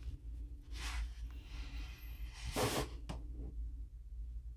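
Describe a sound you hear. Hands handle a small object with soft rustling.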